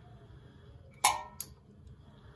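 A metal box clanks down onto a hard floor.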